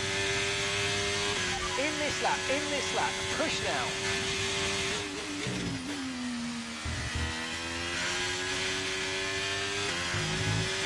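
A racing car engine screams at high revs, drops in pitch as it slows, then revs up again.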